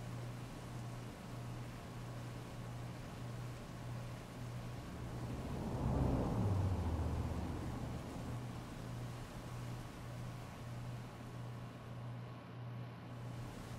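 Heavy rain pours steadily onto a wet street.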